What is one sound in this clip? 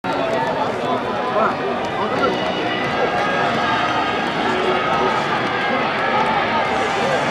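A large crowd of fans chants and cheers loudly outdoors.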